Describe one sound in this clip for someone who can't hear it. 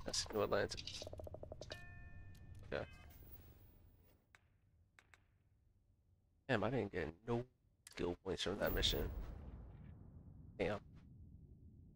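Electronic interface sounds whoosh and beep in short bursts.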